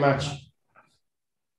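A second man speaks briefly over an online call.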